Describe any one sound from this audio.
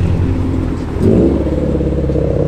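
A car engine rumbles as a car drives past.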